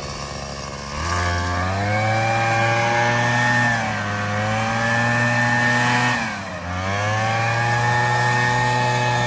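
A leaf blower roars with a high whine, briefly dipping before surging again.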